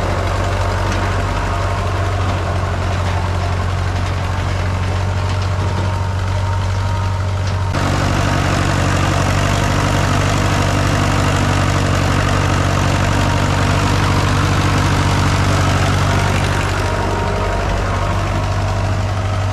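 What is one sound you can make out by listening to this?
A tractor engine chugs steadily nearby.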